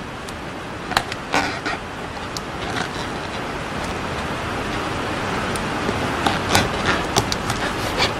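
Rubber balloons squeak and rub.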